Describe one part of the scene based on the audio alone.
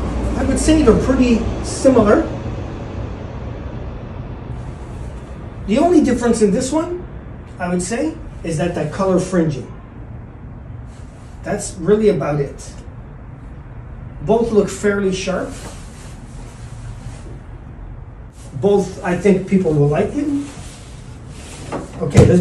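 A man talks calmly and close by, in short phrases with pauses.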